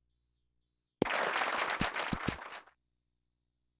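A golf ball thuds and bounces on grass.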